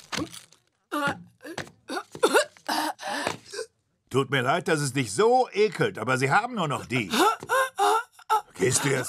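A woman chokes and gasps loudly.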